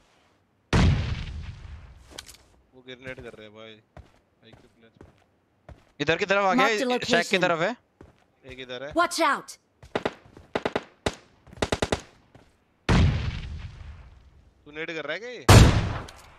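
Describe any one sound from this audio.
A rifle fires loud single shots that boom and echo away.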